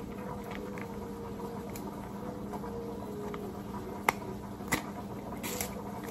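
A plastic cap clicks and rattles on a bottle.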